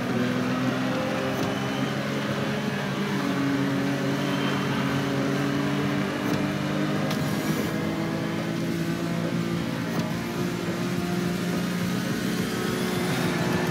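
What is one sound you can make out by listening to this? A car engine roars steadily at high revs, shifting pitch as it accelerates.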